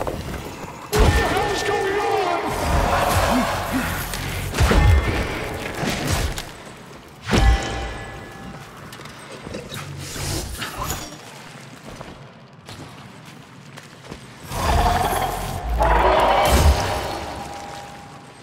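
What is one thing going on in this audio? A monster screeches and snarls up close.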